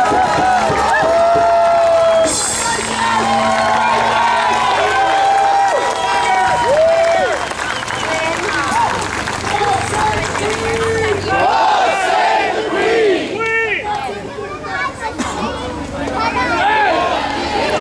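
Men sing loudly together outdoors.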